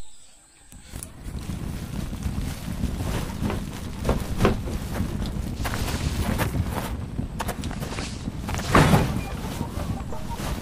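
Wind gusts outdoors, rumbling low and steady.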